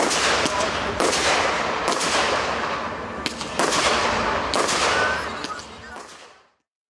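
Fireworks burst with loud, echoing bangs.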